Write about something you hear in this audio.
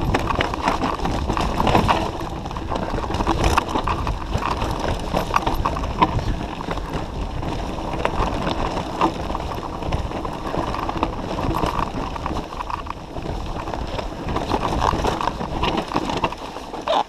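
Wind rumbles steadily past a microphone outdoors.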